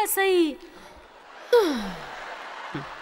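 A woman speaks with exaggerated, sliding pitch through a microphone in a large hall.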